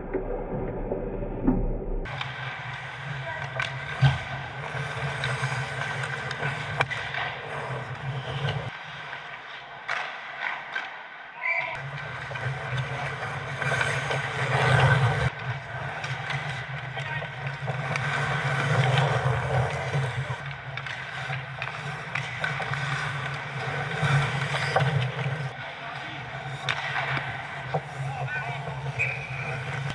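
Skates scrape and hiss across ice.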